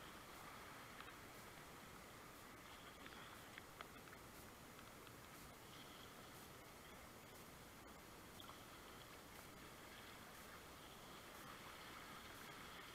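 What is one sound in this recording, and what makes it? A paddle splashes into the water now and then.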